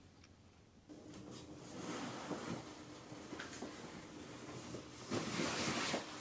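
Denim fabric rustles close by.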